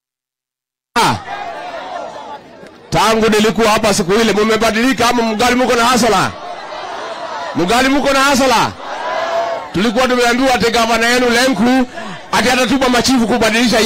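A man shouts a speech with energy through a loudspeaker outdoors.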